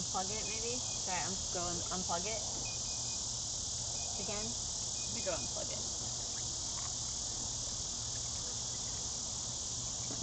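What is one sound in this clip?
Water splashes and sloshes in a tub.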